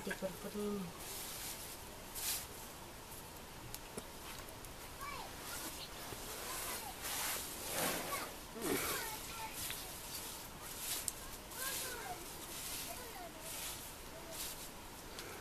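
Leaves rustle as they are stirred with a stick.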